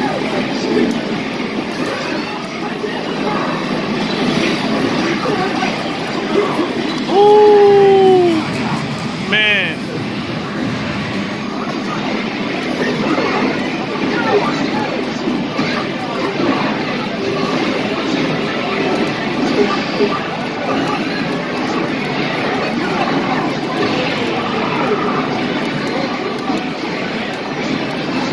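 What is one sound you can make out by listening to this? Buttons on an arcade cabinet click and clatter rapidly.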